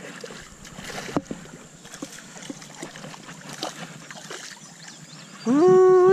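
A hooked fish splashes at the water's surface.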